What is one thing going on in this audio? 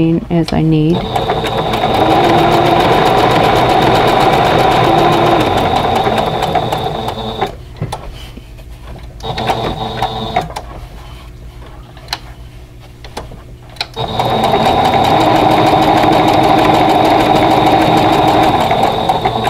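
A sewing machine hums and taps rapidly as it stitches.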